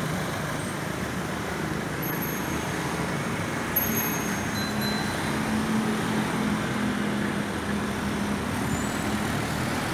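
Motorbikes pass by on a street.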